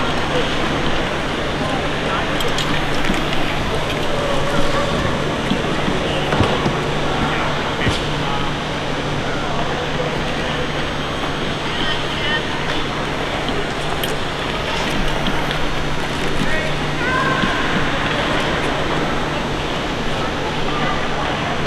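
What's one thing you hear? Skate blades scrape and hiss on ice.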